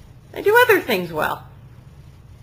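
A woman speaks a short question nearby.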